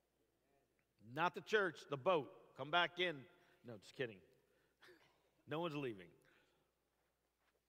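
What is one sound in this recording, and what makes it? A middle-aged man speaks with animation through a microphone in a large echoing room.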